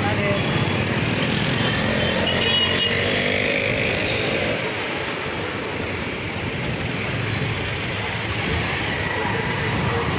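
A motor scooter passes close by.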